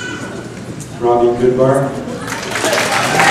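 An elderly man speaks into a microphone over loudspeakers in a large echoing hall.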